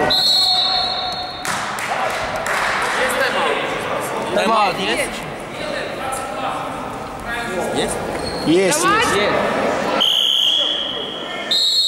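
Men shout to each other across the echoing hall.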